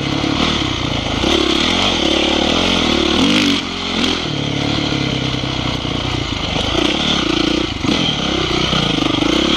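A dirt bike engine revs up and down as the bike rides along a dirt trail.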